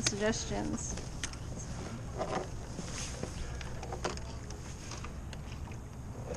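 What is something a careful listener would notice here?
Oars splash and swish through water.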